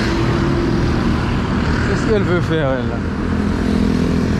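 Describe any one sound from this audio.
A motorbike engine drones as it passes close by.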